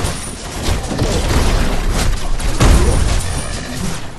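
A fiery blast booms and roars.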